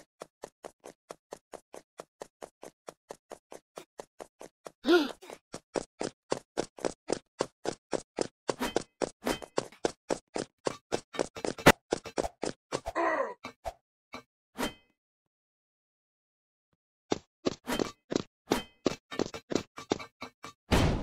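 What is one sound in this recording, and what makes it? Quick game footsteps patter steadily on hard ground.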